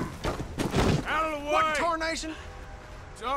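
A man shouts loudly and angrily nearby.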